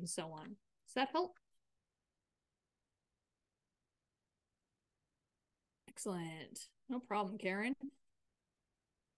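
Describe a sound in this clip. A middle-aged woman speaks calmly over an online call, with long pauses.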